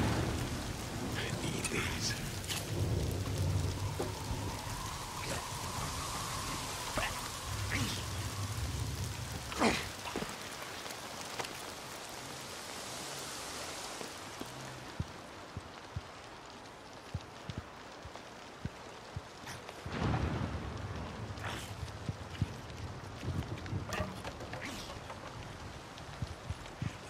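Footsteps tread steadily over boards and debris.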